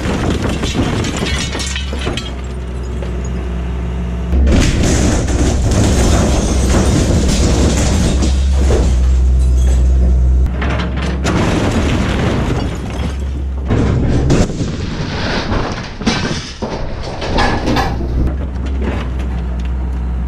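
Metal walls crunch, scrape and tear as a bucket crushes them.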